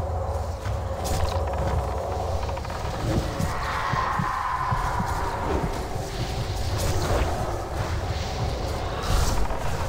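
Magic spells crackle and whoosh amid a busy battle.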